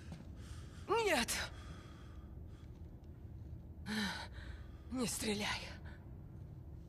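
A young woman speaks in a weak, pleading voice.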